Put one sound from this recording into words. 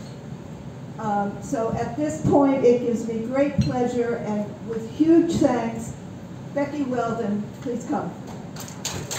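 An elderly woman speaks calmly into a microphone through a loudspeaker in a large room.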